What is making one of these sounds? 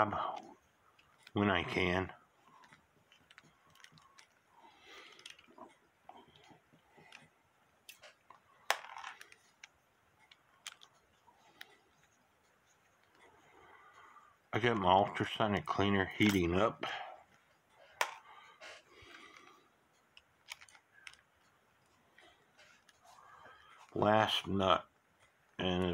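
Small metal parts click and tap as they are handled close by.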